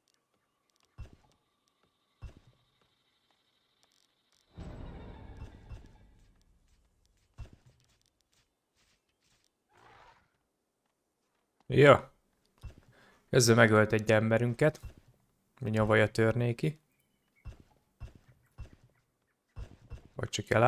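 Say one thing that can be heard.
Soft interface clicks sound now and then.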